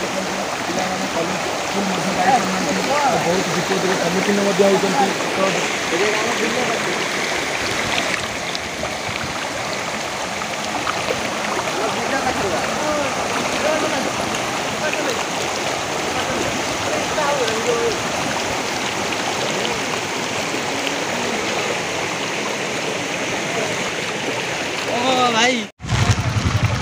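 Floodwater rushes and gurgles steadily.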